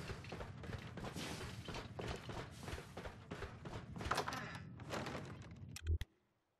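Footsteps crunch over debris and dry leaves.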